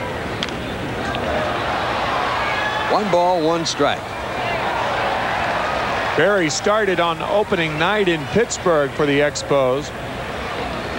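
A large crowd murmurs and cheers in a stadium.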